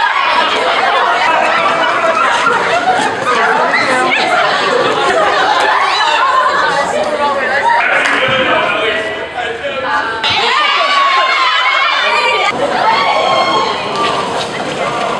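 A crowd of young people chatters and laughs.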